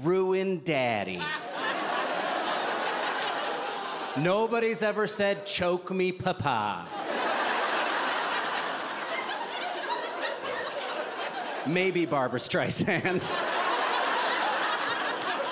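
An audience laughs and cheers.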